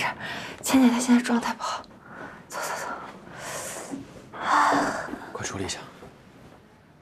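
A young man speaks quietly and urgently close by.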